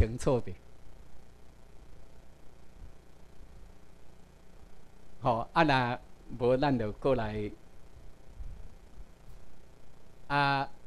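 A man speaks calmly through a microphone in a large room, pausing between phrases.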